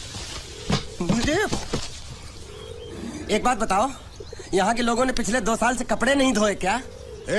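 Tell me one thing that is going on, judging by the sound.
A boy speaks nearby.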